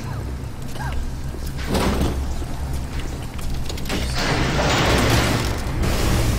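Electricity crackles and buzzes close by.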